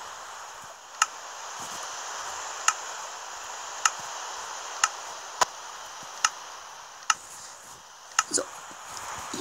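Short clicks sound as menu buttons are tapped.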